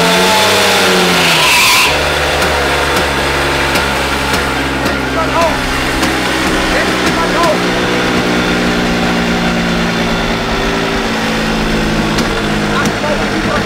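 A scooter engine revs loudly at high speed, then drops to a steady idle.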